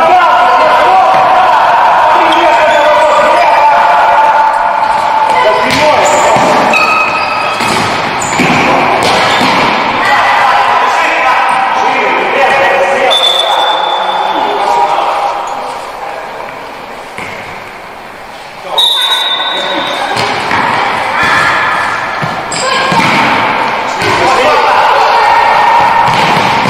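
A ball thumps as it is kicked.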